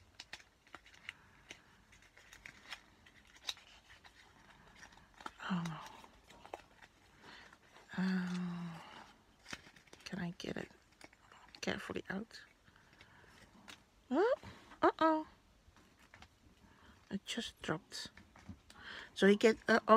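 Cardboard packaging rustles and scrapes as hands fold and open it.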